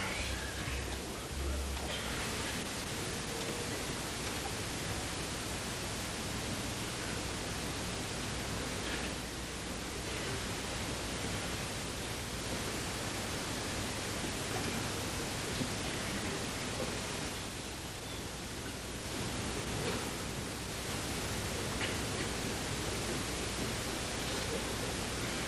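A small jazz band plays on a stage, heard from far back in a hall.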